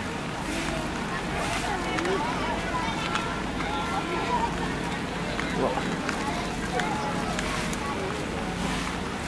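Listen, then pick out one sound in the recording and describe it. Footsteps squelch on wet ground.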